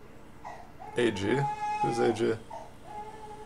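A man speaks casually into a microphone, close by.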